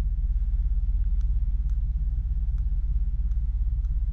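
A plastic button clicks softly.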